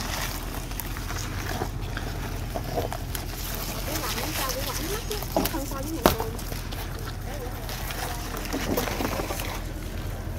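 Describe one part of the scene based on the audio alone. Leafy vines rustle and snap as they are picked by hand.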